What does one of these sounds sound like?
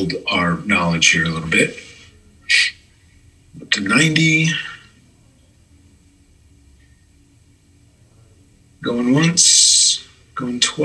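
A man speaks calmly through an online call microphone, in short bursts.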